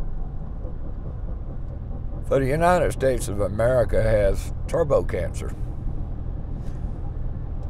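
A car engine hums steadily with road rumble.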